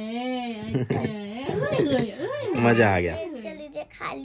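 A baby laughs and squeals loudly close by.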